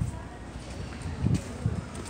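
A shopping cart rattles as it rolls across a hard floor.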